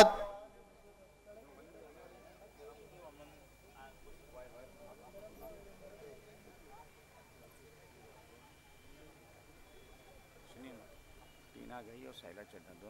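A large crowd murmurs quietly.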